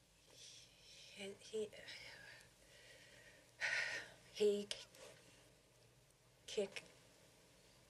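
A woman speaks softly and haltingly close by.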